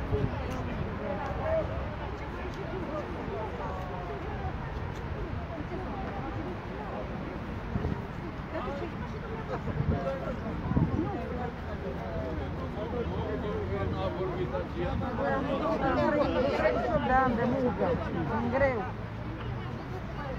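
A crowd of men and women talks all at once outdoors.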